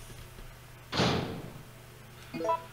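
A heavy door swings open with a rushing creak.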